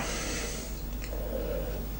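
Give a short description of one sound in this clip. A man sips a drink from a glass.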